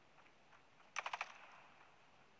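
A rifle fires a short burst of four shots.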